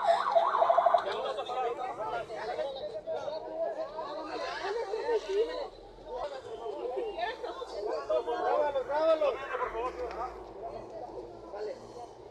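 Several people talk and shout over one another.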